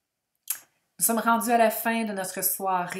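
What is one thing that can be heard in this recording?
A woman speaks with animation, close through a microphone.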